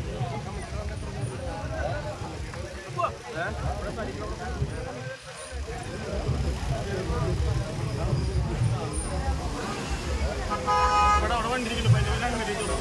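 A large crowd of men chatters and murmurs nearby outdoors.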